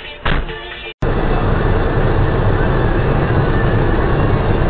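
A car engine hums steadily with road noise as the car drives along.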